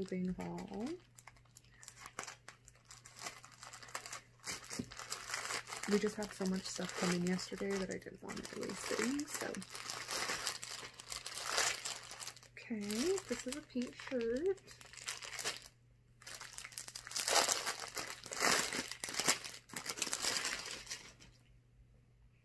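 A plastic wrapper crinkles and rustles as hands handle it.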